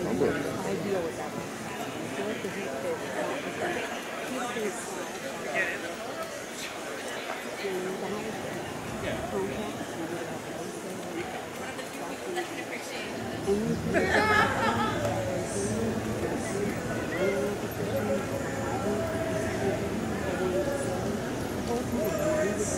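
A crowd of men and women chatters outdoors at a distance.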